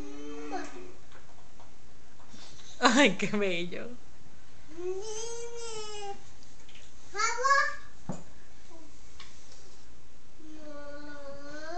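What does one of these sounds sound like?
A man speaks softly and playfully to a child close by.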